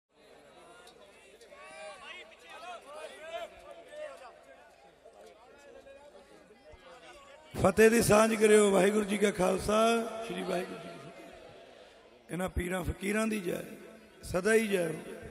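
A man speaks loudly into a microphone through loudspeakers.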